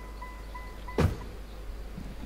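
A car door thuds shut.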